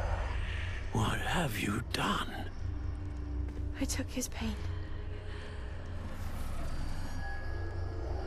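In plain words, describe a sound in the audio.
A woman speaks softly and calmly.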